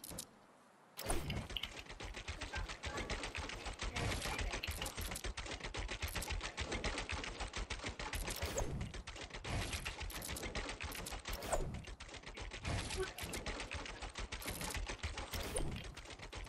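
Building pieces snap into place in rapid, clattering bursts.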